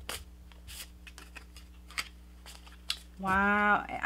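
A card is laid down with a light tap.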